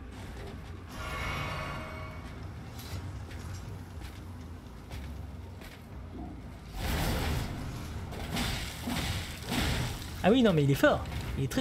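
A flaming blade whooshes and crackles through the air.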